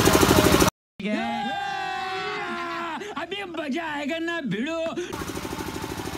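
A man sings out loudly and with emotion.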